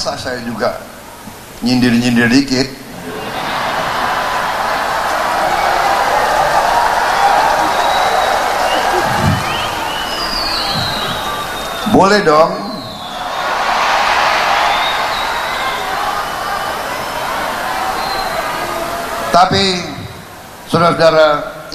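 A man speaks loudly into a microphone through loudspeakers, in short forceful bursts.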